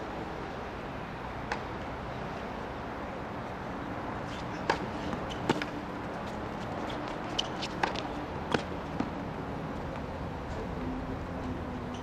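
Sneakers squeak and scuff on a hard court.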